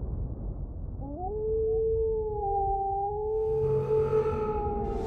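A wolf howls long and wavering.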